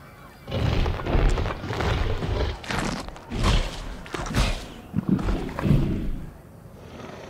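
A large dinosaur roars loudly and growls.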